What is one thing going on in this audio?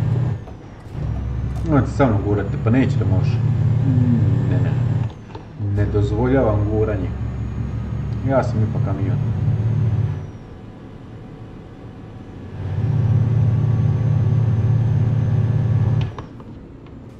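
A truck engine drones steadily and cuts out now and then.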